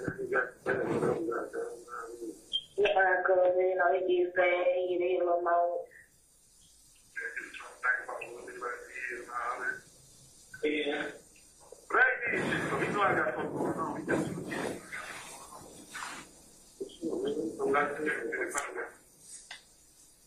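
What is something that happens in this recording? A man speaks calmly into a microphone, pausing now and then.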